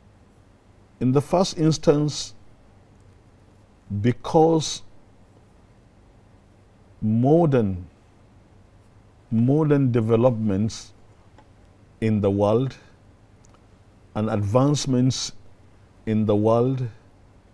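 An elderly man speaks calmly and slowly into a close microphone, with pauses between phrases.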